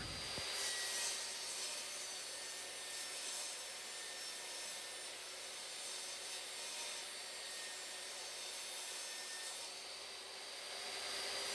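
A wooden board slides across a metal table top.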